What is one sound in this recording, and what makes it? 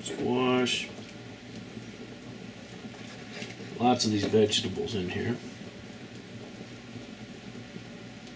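Broth splashes and drips into a bowl.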